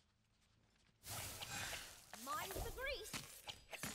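Magical blasts and weapon strikes crash loudly in a fight.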